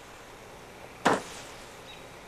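A loud firework bang goes off.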